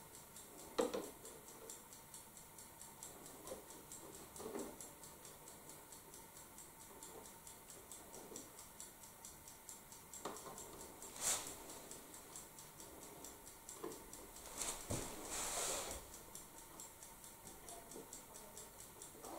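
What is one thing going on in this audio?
A tape measure slides and rattles against wood.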